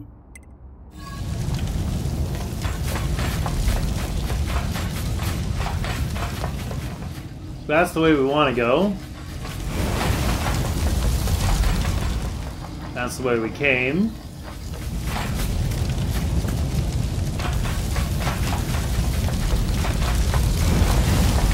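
Fires roar and crackle steadily.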